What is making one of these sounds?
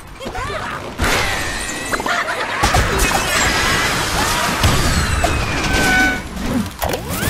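Wooden blocks crash and clatter as a tower collapses.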